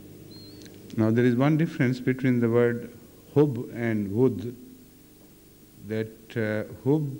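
An elderly man speaks calmly into a microphone.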